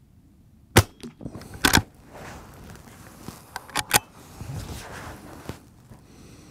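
A rifle's lever clacks as it is worked.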